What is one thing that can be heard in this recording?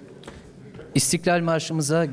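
A man speaks through a loudspeaker in a large room.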